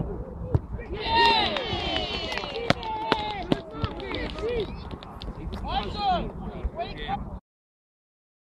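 Young players shout and cheer outdoors.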